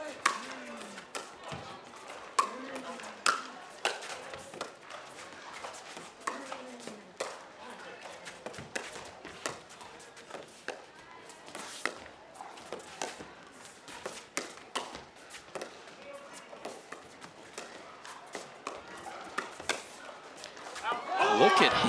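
Paddles pop against a ball in a quick rally.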